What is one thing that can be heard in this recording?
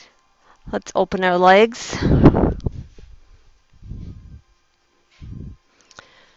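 A woman speaks calmly, heard through a microphone.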